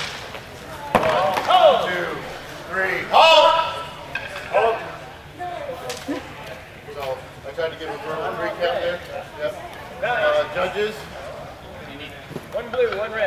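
Men shout with excitement in a large echoing hall.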